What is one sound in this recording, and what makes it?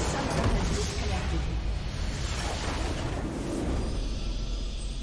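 Loud magical blasts and crashes burst in a game battle.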